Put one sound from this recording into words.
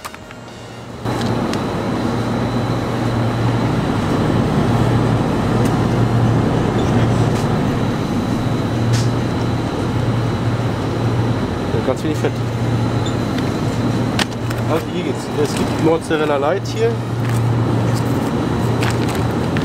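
Refrigerated shelves hum steadily.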